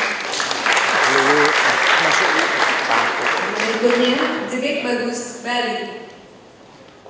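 A crowd applauds loudly in a large hall.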